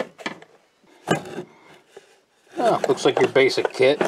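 Metal tools rattle and clink inside a small plastic case.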